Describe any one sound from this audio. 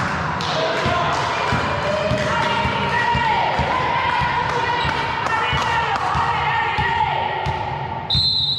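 Sneakers squeak on a gym floor in a large echoing hall.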